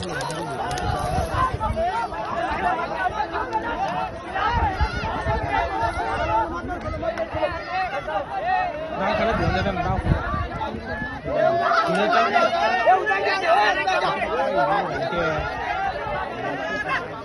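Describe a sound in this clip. A crowd of men shouts and yells excitedly outdoors.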